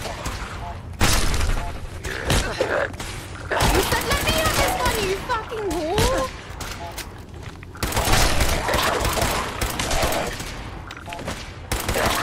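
Gunfire bursts loudly and rapidly.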